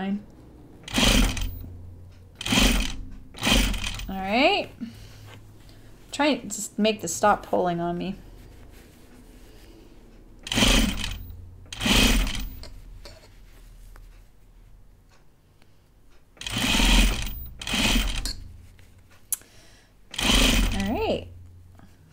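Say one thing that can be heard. A sewing machine stitches in short, quick bursts.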